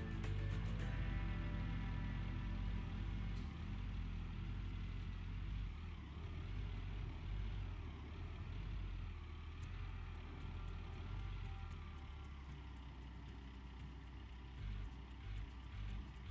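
A heavy excavator's diesel engine rumbles steadily.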